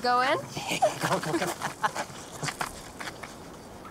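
Footsteps run across grass outdoors.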